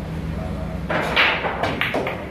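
A cue strikes a pool ball sharply.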